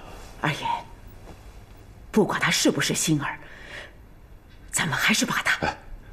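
An older woman speaks earnestly and anxiously, close by.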